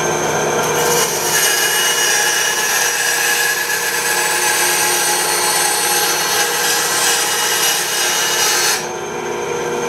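A band saw whines as it cuts through a wooden board.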